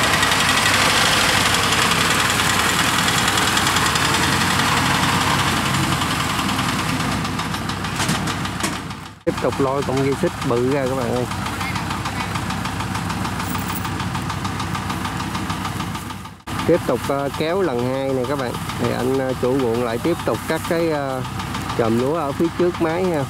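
A combine harvester's engine drones in the field.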